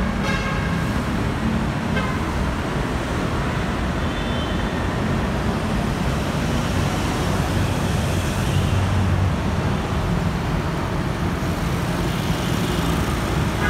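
Traffic rumbles past steadily on a busy street.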